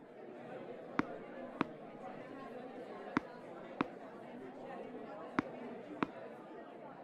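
A tennis ball bounces on a hard court several times.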